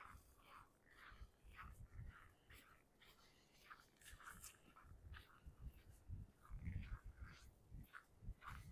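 Footsteps crunch steadily on packed snow outdoors.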